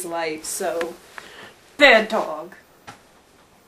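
A dog whines in high, wavering cries.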